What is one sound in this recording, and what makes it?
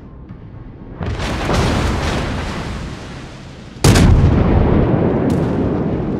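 Explosions boom and rumble as shells hit a ship.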